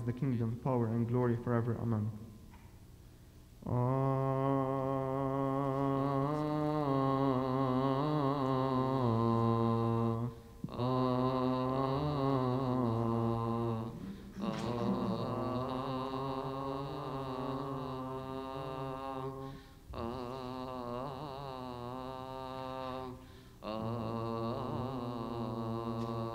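Men chant a long, slow hymn in unison in a large echoing hall, with short pauses between phrases.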